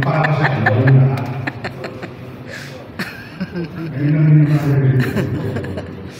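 A middle-aged man speaks into a microphone through loudspeakers in an echoing room.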